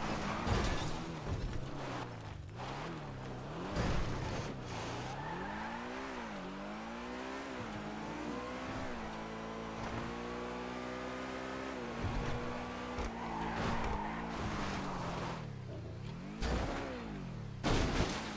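Tyres skid and scrape over rough ground.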